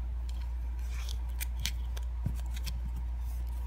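Doll clothes rustle softly as hands adjust them.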